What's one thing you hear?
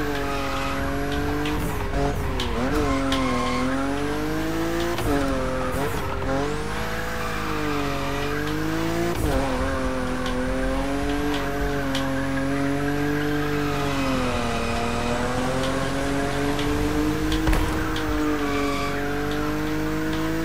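Tyres squeal as a car drifts.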